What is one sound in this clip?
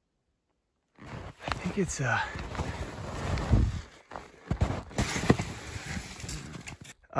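Skis swish and crunch through deep powder snow.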